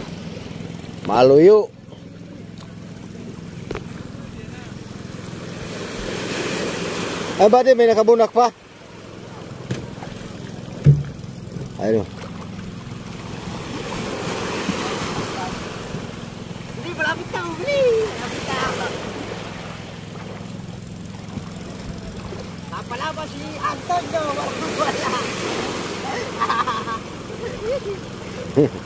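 Men talk loudly nearby, outdoors.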